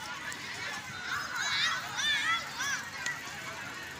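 A crowd of children and young men shouts and calls out in the distance outdoors.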